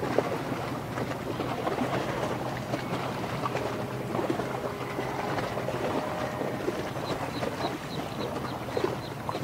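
A large ship's engine hums low and steady.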